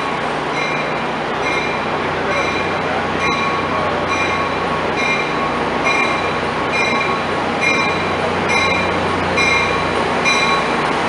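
Train wheels clack and ring rhythmically over the rail joints.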